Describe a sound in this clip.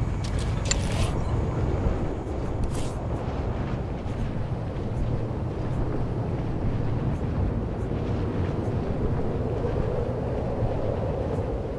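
A hovering speeder's engine hums with a low, steady rumble.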